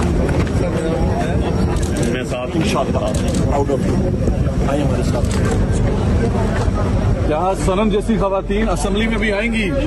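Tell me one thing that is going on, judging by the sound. An older man speaks calmly close by.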